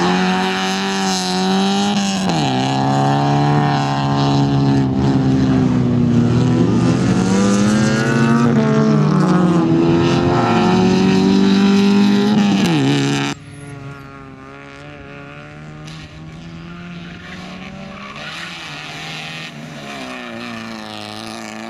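A car engine roars and revs up and down as it races close by.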